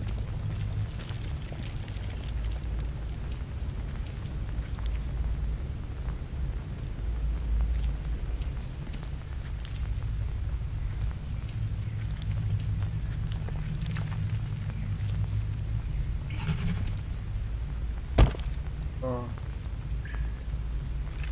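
A low rumble hums steadily.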